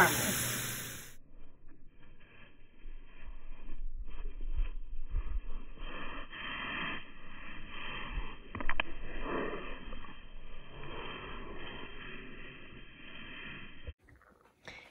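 Dogs' paws crunch through snow.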